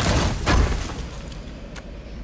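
A heavy lid opens with a bright shimmering burst at the start.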